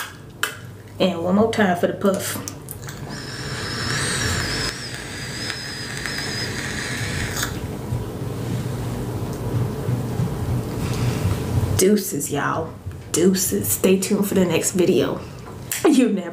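A young woman talks calmly close to a microphone.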